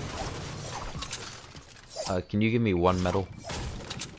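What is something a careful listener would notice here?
A pickaxe swings through the air with a whoosh.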